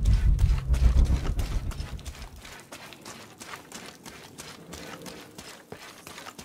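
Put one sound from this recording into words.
Footsteps fall steadily on stone in an echoing tunnel.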